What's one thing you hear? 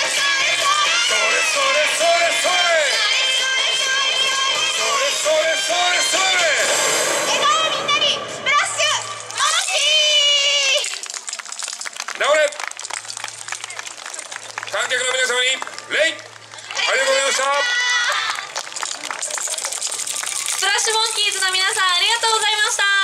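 A group of young women chant loudly together outdoors.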